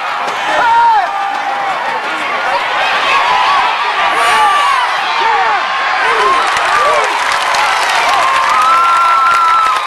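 A crowd of spectators cheers and shouts outdoors.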